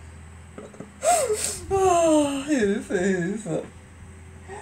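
A middle-aged woman laughs.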